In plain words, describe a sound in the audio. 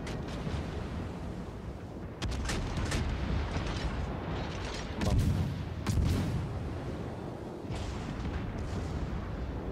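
Naval guns boom.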